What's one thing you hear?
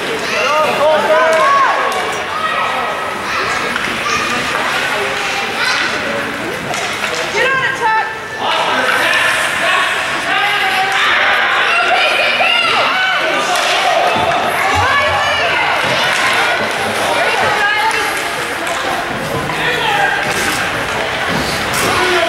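A crowd of spectators chatters and calls out loudly in a large echoing hall.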